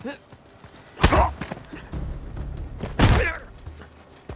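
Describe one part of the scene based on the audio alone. A man lands heavily on the ground with a thud.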